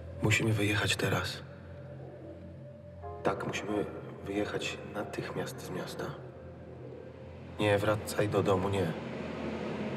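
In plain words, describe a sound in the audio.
An elderly man speaks quietly and urgently, close by.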